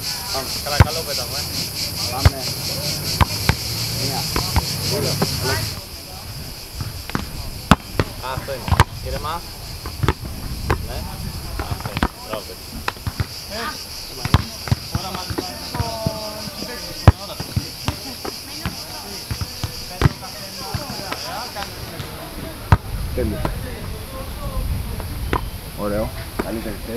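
Men call out to each other outdoors.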